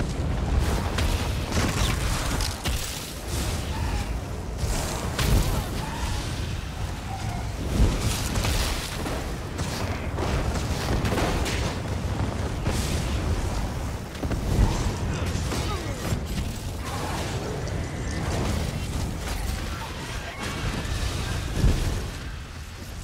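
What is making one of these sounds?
Magic spells crackle and burst with electric zaps.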